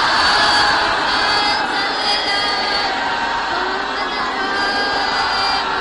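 A woman speaks steadily into a microphone, heard through a loudspeaker.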